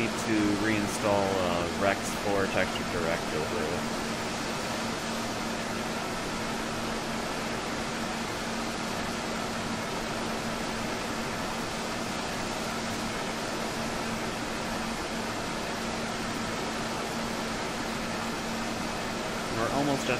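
Jet engines whine and rumble steadily.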